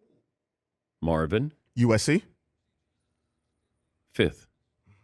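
An older man speaks animatedly into a microphone.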